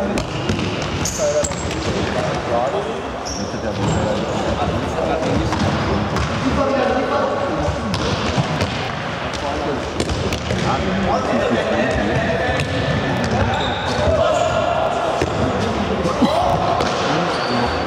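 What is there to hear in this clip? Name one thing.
Sneakers squeak sharply on the hall floor.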